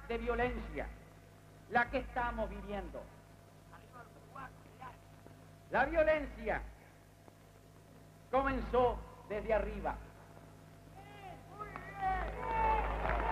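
A man speaks with animation into a microphone, heard through loudspeakers with pauses between phrases.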